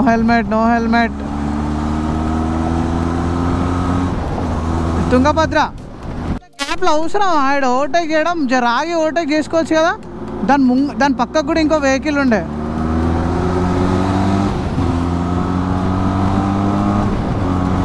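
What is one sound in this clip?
A motorcycle engine hums steadily and rises in pitch as it speeds up.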